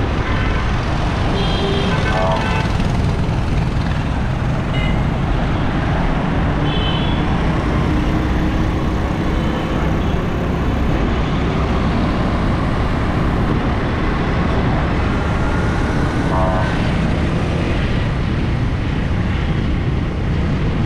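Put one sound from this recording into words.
Car and rickshaw engines rumble steadily on the road.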